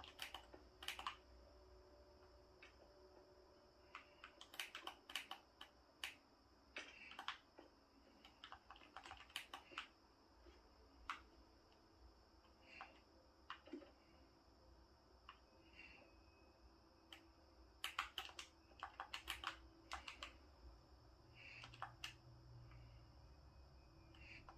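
A video game plays through a television speaker, with short crunching clicks of blocks breaking.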